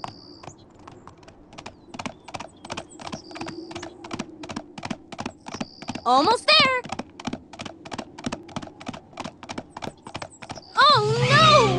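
Small hooves clip-clop quickly in a steady run.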